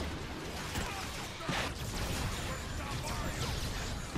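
An electric blast crackles loudly.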